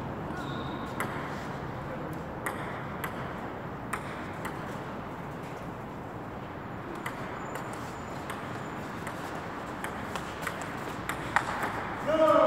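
A ping-pong ball clicks back and forth on paddles and a table in a large echoing hall.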